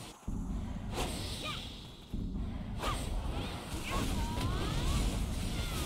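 Magic blasts burst with a whooshing impact.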